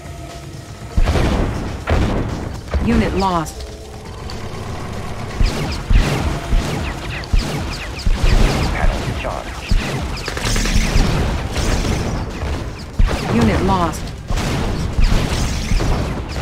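Gunfire and explosions crackle and boom in rapid bursts.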